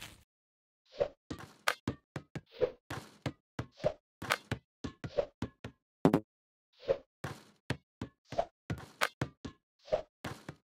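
A basketball bounces with repeated thuds.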